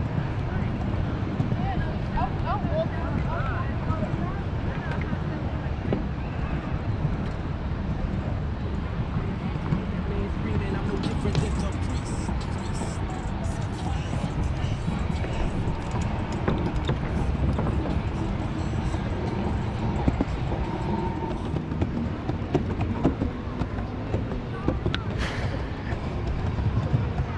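Bicycle tyres roll over wooden boards.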